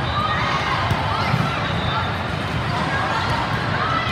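A volleyball is struck with a dull slap.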